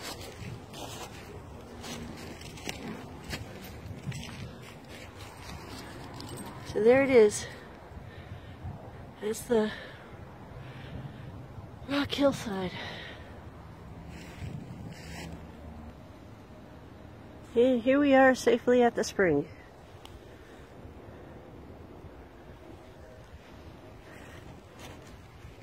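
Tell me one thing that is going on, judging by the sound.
Footsteps crunch and rustle through dry leaves outdoors.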